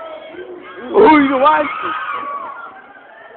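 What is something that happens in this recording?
A young man shouts loudly nearby.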